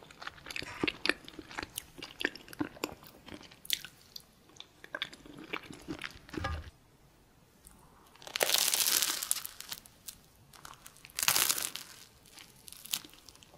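A young woman chews food wetly close to a microphone.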